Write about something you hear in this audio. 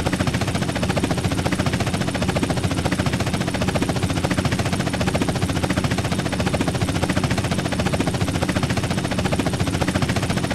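A helicopter's rotor blades thump rapidly and steadily with a droning engine.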